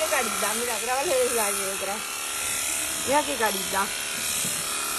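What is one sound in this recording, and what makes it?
A lamb bleats close by, in several wavering cries.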